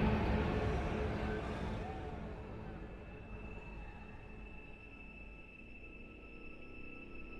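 A crowd murmurs in a busy room, growing quieter.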